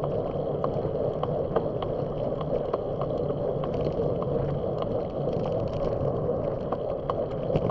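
A vehicle drives along a road with a steady rumble.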